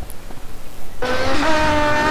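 A sport motorcycle engine runs.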